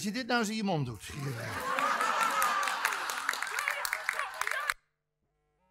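An audience laughs and applauds in a large hall.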